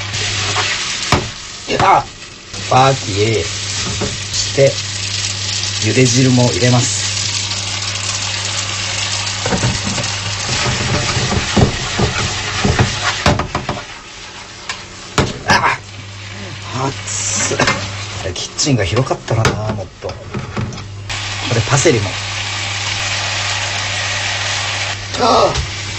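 Spaghetti sizzles steadily in a hot frying pan.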